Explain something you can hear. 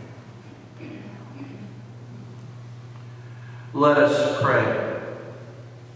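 An elderly man reads aloud through a microphone in an echoing room.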